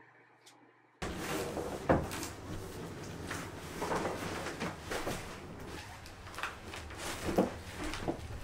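A cardboard box bumps and scrapes against the floor.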